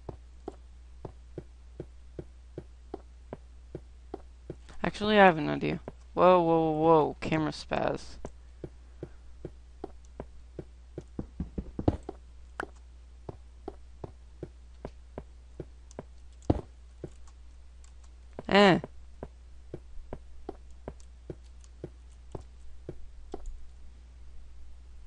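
Footsteps tap steadily on stone.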